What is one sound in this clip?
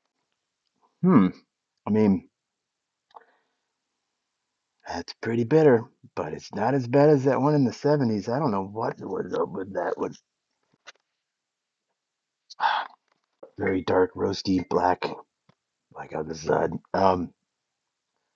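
A man speaks calmly up close, his voice slightly muffled.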